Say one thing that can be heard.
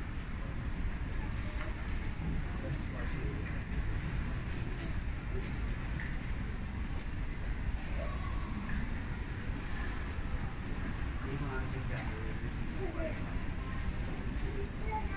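A crowd of children murmurs softly in a large echoing hall.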